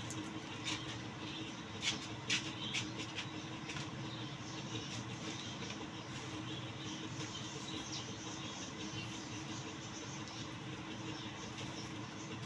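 Small boxes rustle and tap as a man handles them.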